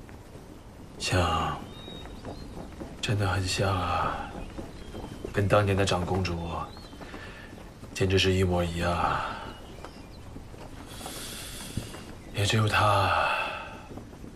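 A middle-aged man speaks calmly and slowly nearby.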